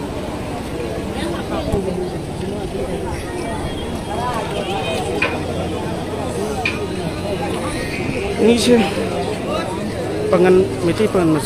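A large crowd of men and women chatters and calls out outdoors.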